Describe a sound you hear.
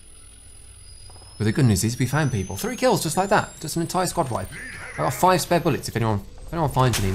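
An electric charging hum rises in pitch.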